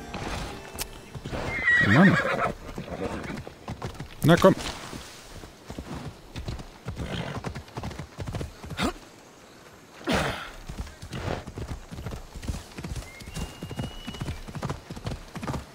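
A horse's hooves clop steadily on the ground.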